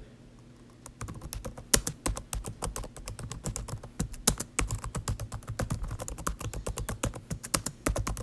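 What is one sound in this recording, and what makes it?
Fingers tap quickly on a small plastic keyboard.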